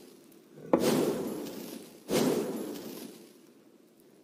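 A soft magical whoosh and shimmer sounds as an item is picked up.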